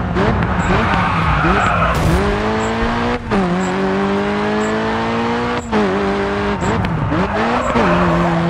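Tyres screech on the road while the car skids through a turn.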